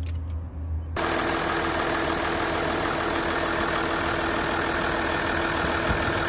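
An engine runs loudly up close with a rushing roar.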